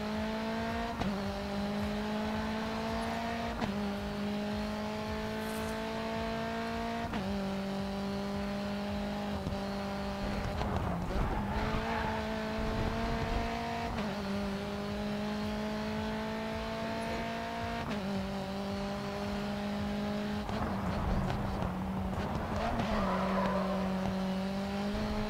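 A race car engine roars, climbing in pitch through each gear and dropping sharply at every gear change.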